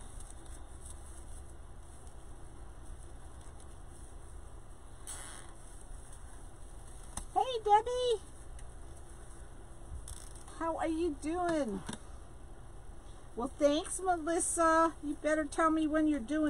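Hands rustle and crinkle tinsel and mesh ribbon up close.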